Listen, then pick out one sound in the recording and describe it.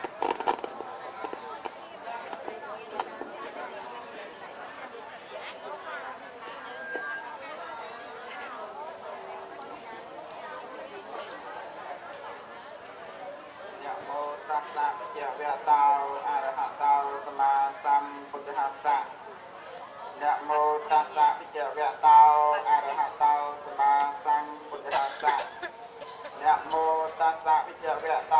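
A large crowd of men and women murmurs a prayer together.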